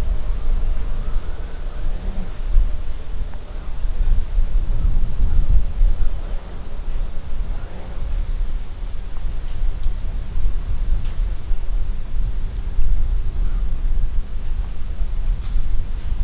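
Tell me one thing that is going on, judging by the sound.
Strong wind gusts and rumbles outdoors.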